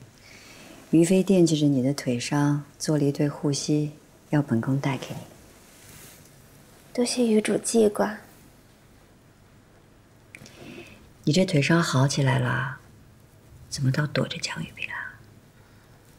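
A woman speaks calmly and warmly.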